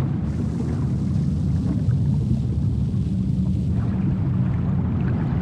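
Air bubbles burble up from a diver's breathing gear.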